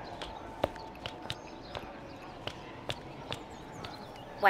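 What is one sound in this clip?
Sandals step on cobblestones.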